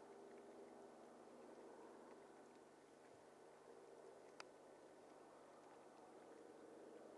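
A horse's hooves thud softly on snowy ground.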